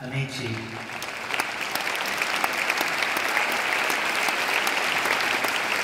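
A large crowd claps in a big echoing hall.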